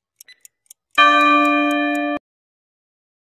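A bell-like buzzer rings once and cuts off.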